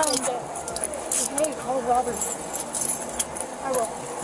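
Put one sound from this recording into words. Metal handcuffs click and rattle.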